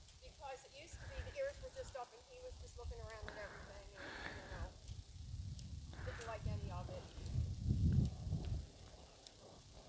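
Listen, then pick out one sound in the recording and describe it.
A horse canters with soft hoofbeats on dirt.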